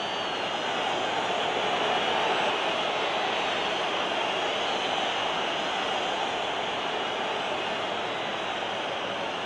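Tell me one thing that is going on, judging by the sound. A large stadium crowd roars steadily throughout.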